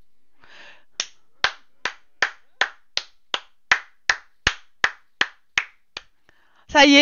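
A young woman giggles in quick short bursts.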